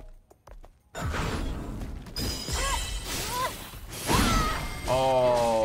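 Sword slashes and heavy impacts clash loudly.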